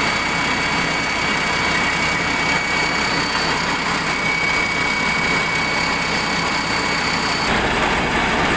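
A large engine roars steadily close by, with a high whine.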